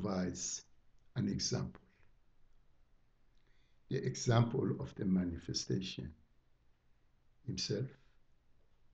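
An elderly man speaks calmly into a microphone, with pauses.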